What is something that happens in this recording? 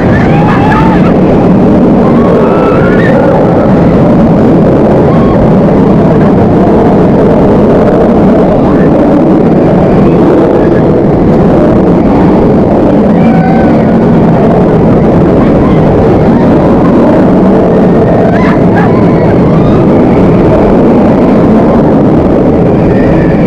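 A roller coaster roars and rattles along its steel track.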